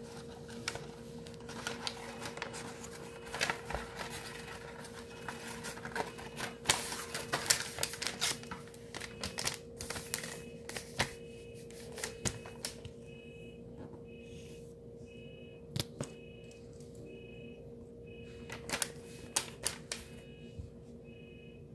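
Paper rustles and crinkles close by as a hand unfolds a sheet.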